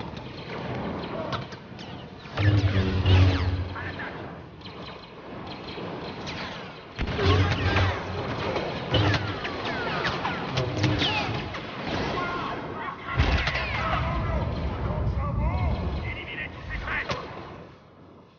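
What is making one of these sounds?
Blaster shots fire and explode in rapid bursts.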